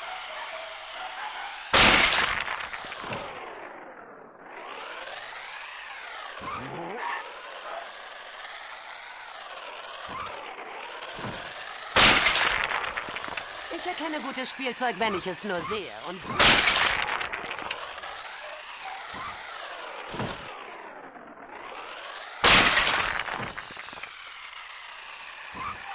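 A small toy motor whirs, its pitch rising and falling.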